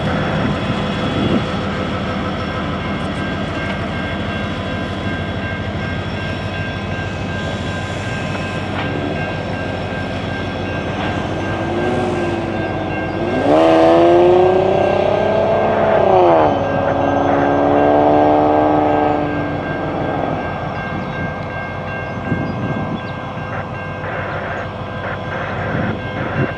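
A diesel-electric locomotive engine rumbles.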